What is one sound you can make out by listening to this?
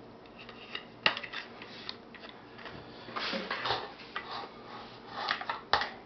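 Plastic parts click and clack as a mount is handled.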